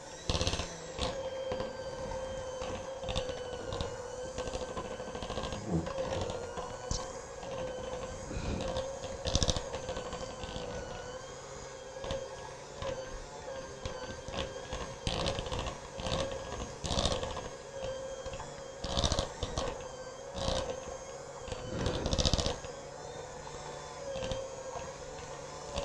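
An electric hand mixer whirs steadily.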